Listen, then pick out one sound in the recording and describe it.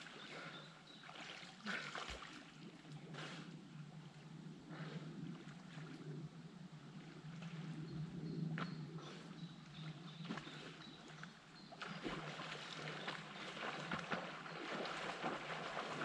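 Wind blows across open water outdoors.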